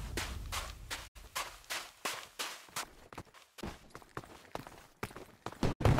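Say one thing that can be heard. Quick footsteps patter on sand.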